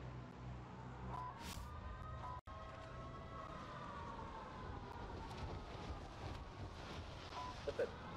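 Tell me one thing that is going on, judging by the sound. Wind rushes steadily past during a fall through the air.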